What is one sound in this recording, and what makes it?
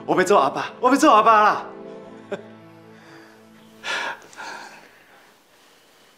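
A man and a woman laugh together.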